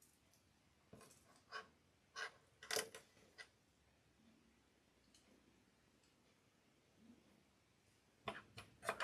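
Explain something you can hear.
Small beads click softly as they are handled.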